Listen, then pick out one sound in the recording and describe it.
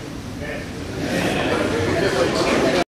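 A crowd of men murmurs and chatters.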